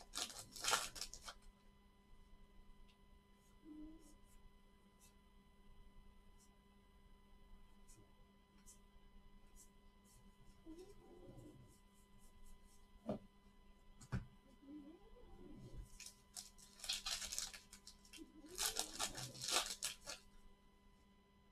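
Plastic wrapping crinkles as a pack is torn open.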